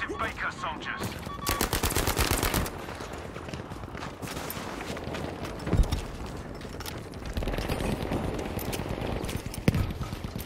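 Footsteps crunch over rubble.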